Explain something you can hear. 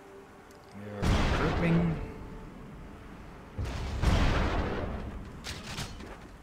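Blasts of game gunfire ring out.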